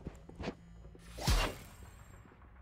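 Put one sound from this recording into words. A sudden whoosh rushes past.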